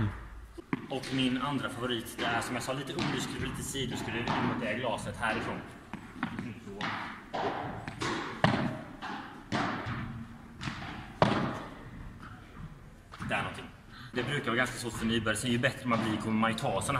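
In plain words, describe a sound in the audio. A man speaks calmly and steadily close by, in an echoing hall.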